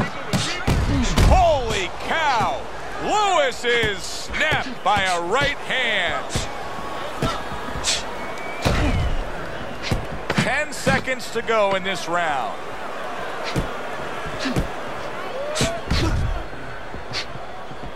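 Gloved punches thud against a body.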